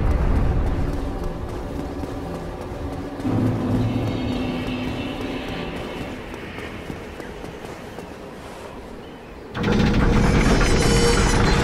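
Footsteps clatter quickly on stone.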